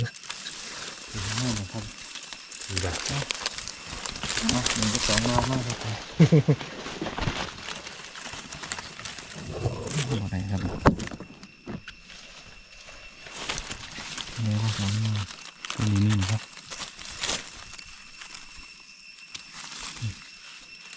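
Dry leaves rustle and crackle as hands move through them.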